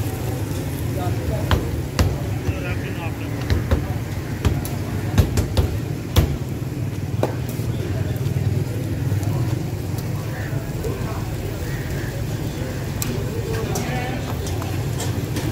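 Flatbreads are flipped and tapped on a hot griddle with sharp clicks.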